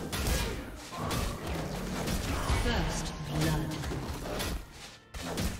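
Video game fight effects clash and crackle.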